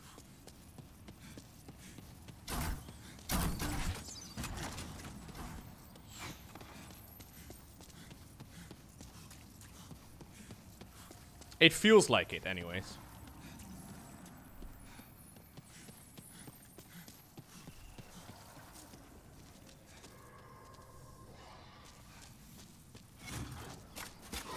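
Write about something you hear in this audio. Footsteps clatter on stone.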